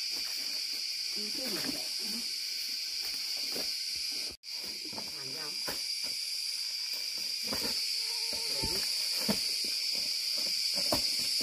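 Footsteps crunch through dry leaves on a slope.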